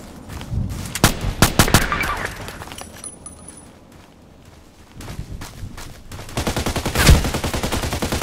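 A rifle fires a few sharp shots.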